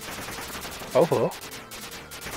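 A short electronic blast bursts loudly.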